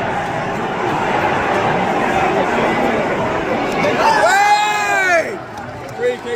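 A crowd roars and chants loudly in a large echoing hall.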